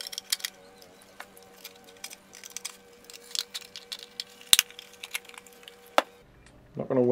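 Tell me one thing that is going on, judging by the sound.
Plastic parts click and rattle in hands.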